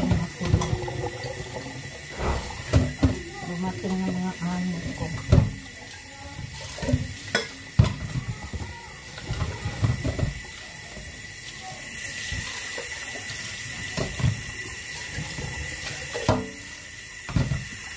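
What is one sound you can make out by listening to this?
Dishes clink and knock close by.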